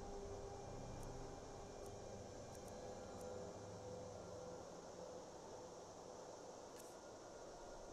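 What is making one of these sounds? Game menu clicks tick softly as options change.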